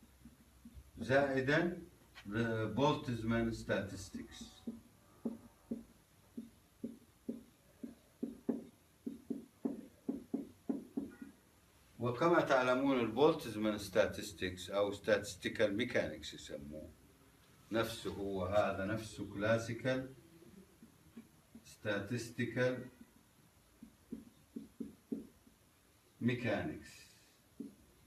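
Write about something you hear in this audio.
A middle-aged man lectures calmly.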